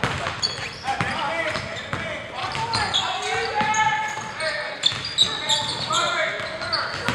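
Young players call out to each other.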